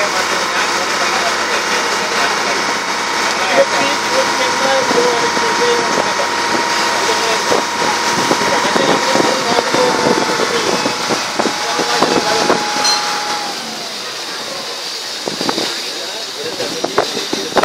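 Water laps and splashes against the hull of a moving boat.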